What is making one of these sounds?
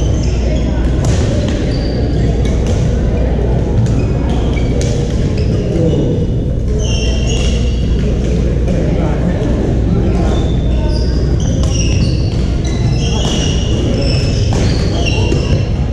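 Paddles pop against plastic balls in a large echoing hall.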